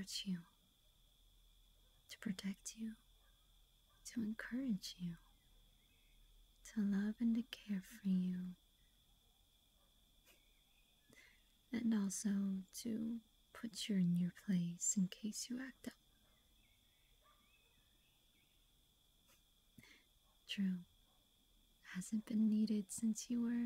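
A young woman speaks softly and warmly, close to a microphone, with pauses.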